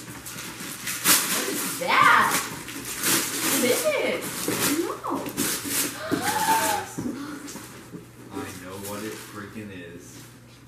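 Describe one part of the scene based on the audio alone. Wrapping paper crinkles and tears as a gift is unwrapped.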